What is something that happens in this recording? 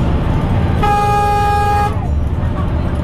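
A bus horn blares loudly for about a second.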